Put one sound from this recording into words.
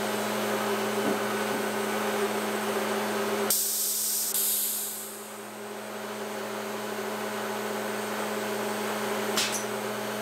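A woodworking machine hums steadily.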